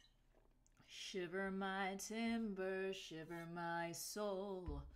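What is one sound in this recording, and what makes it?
A young woman speaks animatedly, close to a microphone.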